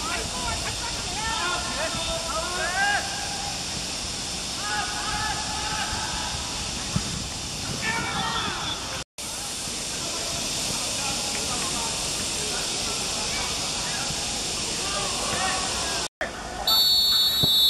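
Young boys shout to each other across an outdoor field.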